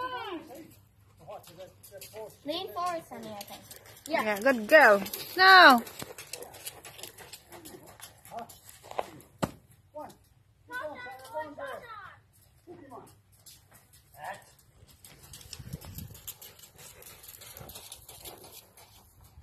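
A horse's hooves thud softly on sand.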